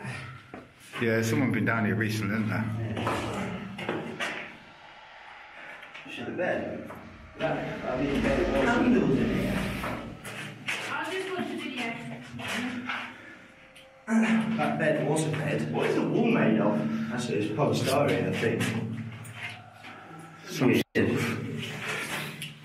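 A young man speaks calmly and close by, his voice echoing in a small hard-walled room.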